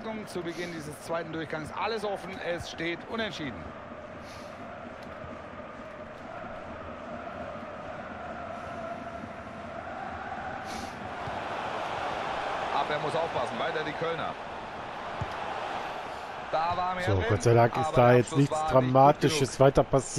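A large stadium crowd murmurs and swells into a roar.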